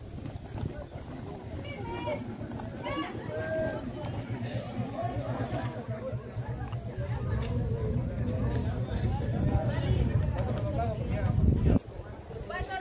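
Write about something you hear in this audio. Many feet march in step on a paved street.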